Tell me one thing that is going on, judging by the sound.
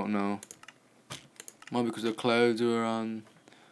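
A game menu button clicks.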